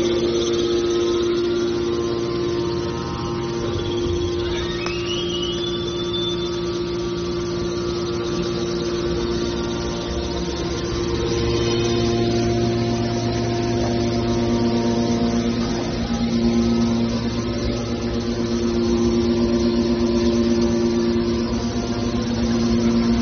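An electric motor drives a hydraulic pump with a steady hum and whine.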